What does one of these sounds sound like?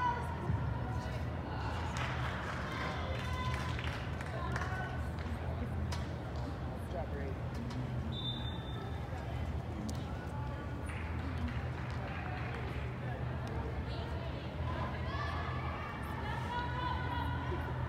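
Young players shout and call to each other, echoing in a large hall.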